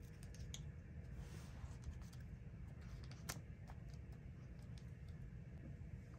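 Paper pages rustle and crinkle softly.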